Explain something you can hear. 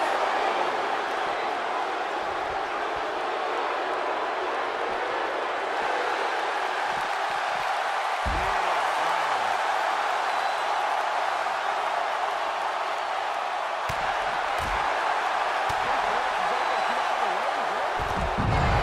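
A large crowd cheers and murmurs steadily throughout.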